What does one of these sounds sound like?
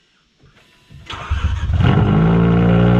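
A car engine cranks and starts with a loud roar.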